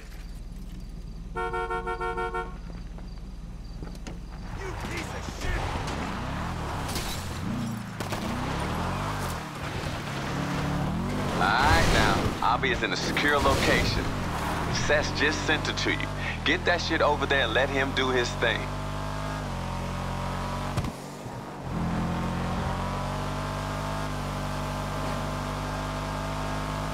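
A car engine revs and roars as it drives.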